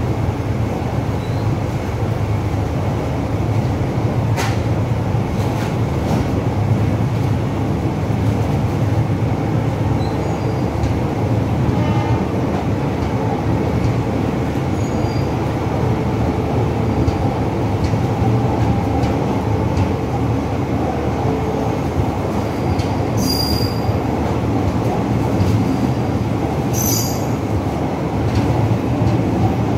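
Wheels clack over rail joints.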